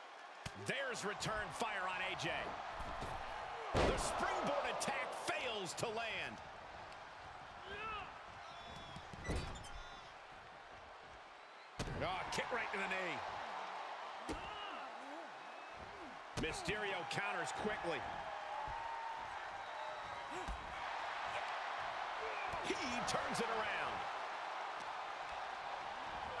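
A crowd cheers and roars throughout.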